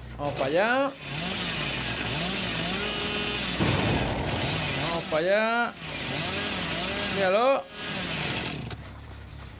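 A chainsaw engine revs and roars.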